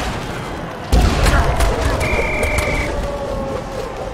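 A heavy tackle lands with a loud thud.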